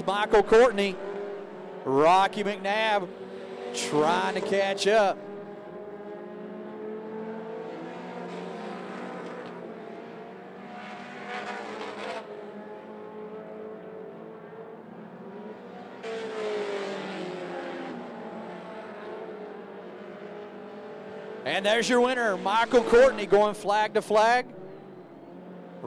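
A race car engine roars steadily.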